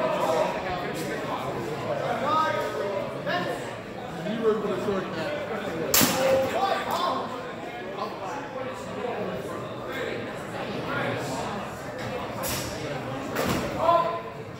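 Steel swords clash and clatter.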